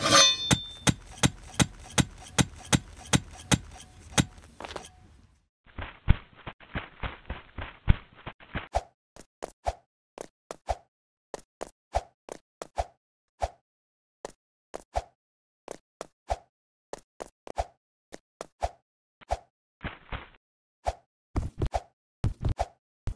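A game character's footsteps patter quickly and evenly.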